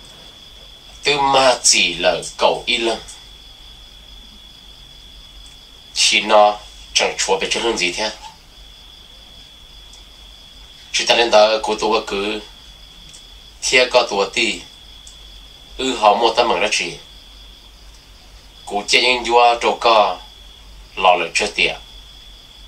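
A young man speaks calmly and close up, in short phrases with pauses.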